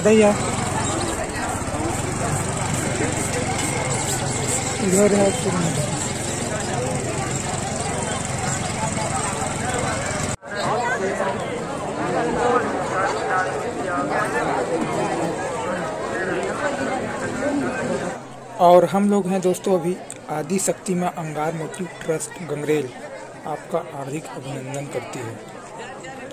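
A large crowd chatters outdoors all around.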